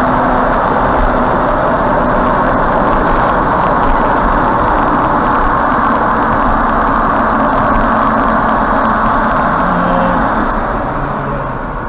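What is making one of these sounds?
A heavy truck roars loudly close alongside, then pulls ahead.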